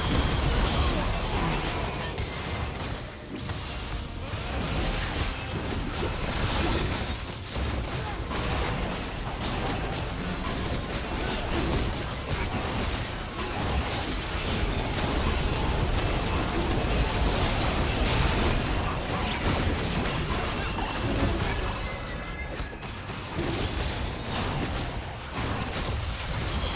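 Game spell effects crackle and boom in a fast fight.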